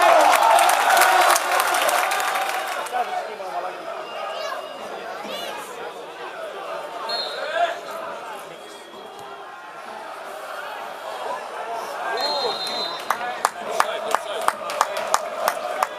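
A large crowd roars and chants in an open stadium.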